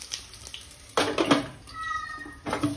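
A glass lid clinks onto a metal pan.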